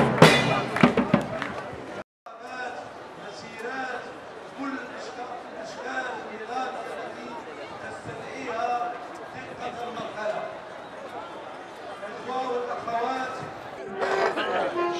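A crowd chants outdoors.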